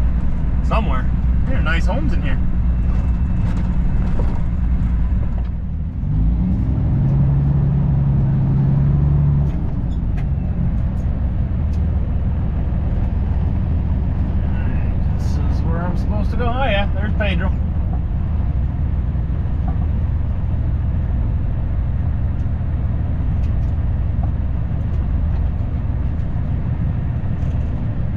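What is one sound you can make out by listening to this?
A car engine rumbles steadily close by.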